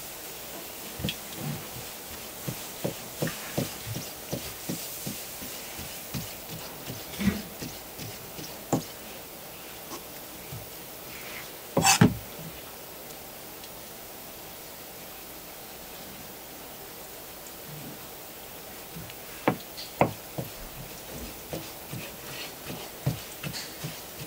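A knife chops on a cutting board with sharp knocks.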